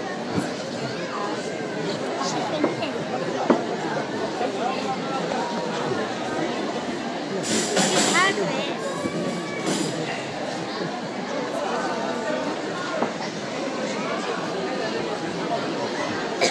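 A group of men sing together through a loudspeaker in a large hall.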